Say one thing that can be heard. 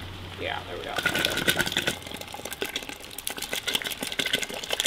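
Thick liquid pours and splashes into a pot.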